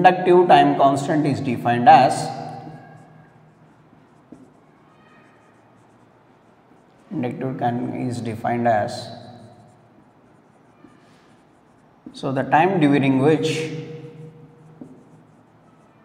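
A young man speaks slowly in short phrases, in a slightly echoing room.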